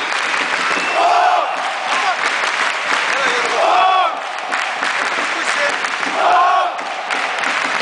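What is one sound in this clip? A man close by shouts a loud cheer.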